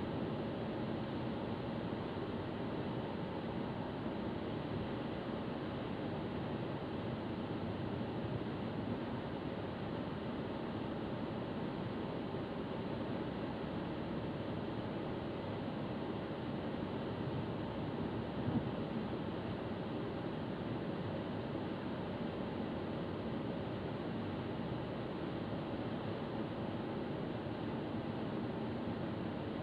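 Tyres roar on the road at speed.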